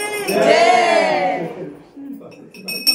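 A woman speaks cheerfully and close by.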